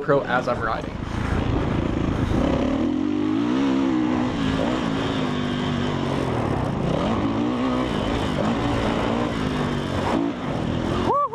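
A dirt bike engine roars and revs up and down as the bike rides along.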